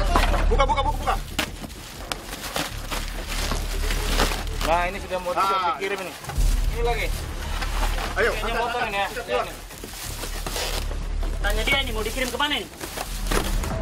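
Plastic wrapping crinkles and tears as hands pull it open.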